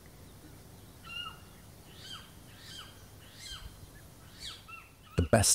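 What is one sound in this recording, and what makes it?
A small owl gives short, sharp calls.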